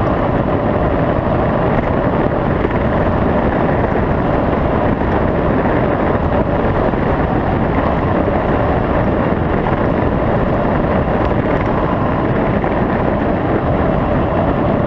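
Wind buffets loudly and steadily while travelling fast outdoors.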